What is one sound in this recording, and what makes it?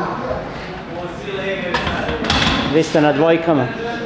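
A heavy barbell clanks as it is racked.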